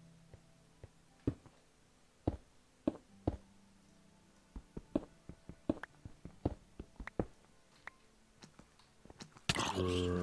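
A pickaxe taps and chips at stone in short, sharp knocks.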